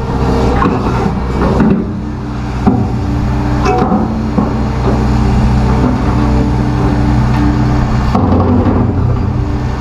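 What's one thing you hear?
Metal clanks and knocks as an excavator bucket works.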